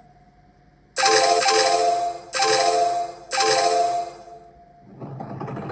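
Game chimes ring out in short bright bursts.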